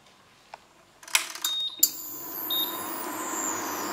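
An induction hob beeps as its buttons are pressed.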